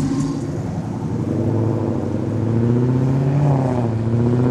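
A car engine revs up loudly.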